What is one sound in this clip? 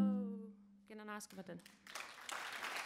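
A woman sings long held notes through a microphone in a large echoing hall.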